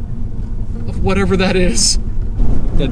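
A man talks calmly up close inside a car.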